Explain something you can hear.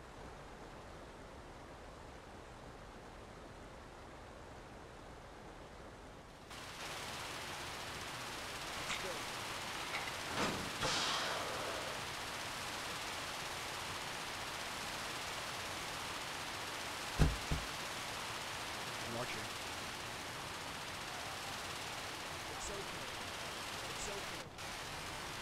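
A fire burns and crackles.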